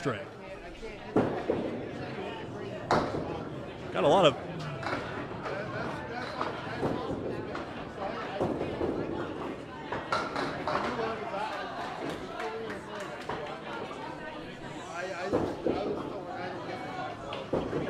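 A bowling ball rolls down a wooden lane.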